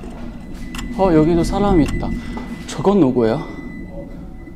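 A young man speaks with surprise nearby.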